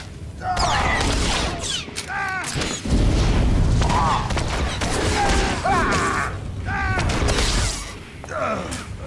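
Lightsabers clash and buzz in a fast fight.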